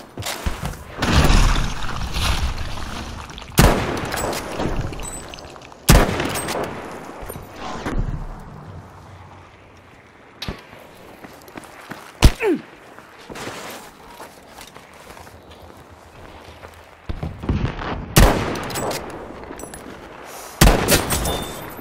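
Rifle shots crack loudly and echo.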